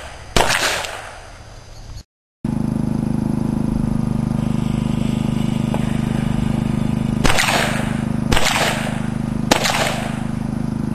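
A revolver fires loud shots outdoors, each followed by a rolling echo.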